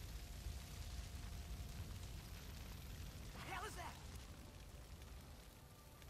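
Fire crackles and roars close by.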